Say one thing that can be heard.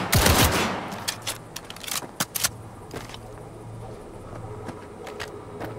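A gun is reloaded with sharp mechanical clicks.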